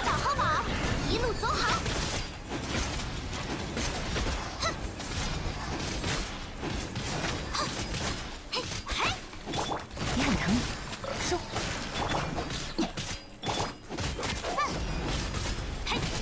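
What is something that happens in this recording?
Game explosions and magic blasts crackle and boom rapidly.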